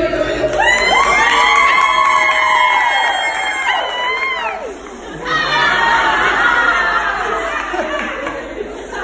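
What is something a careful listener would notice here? A crowd cheers and whoops loudly nearby.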